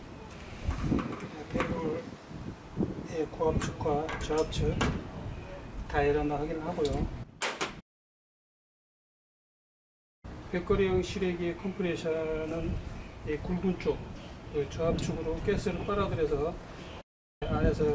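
Metal fittings click and clink as gloved hands work on an air conditioner's service valves.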